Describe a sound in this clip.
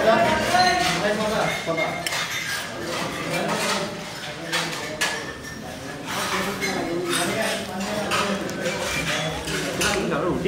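A metal spoon clinks and scrapes against a steel plate.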